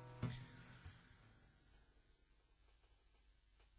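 An acoustic guitar strum rings out and slowly fades.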